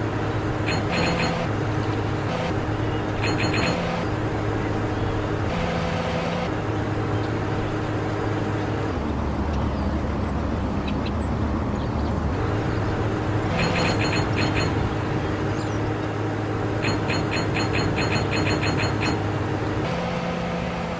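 A car engine hums steadily as a car drives over bumpy ground.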